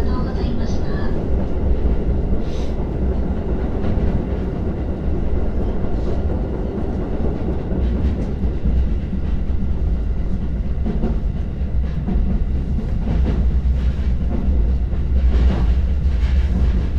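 A train rumbles steadily across a steel bridge.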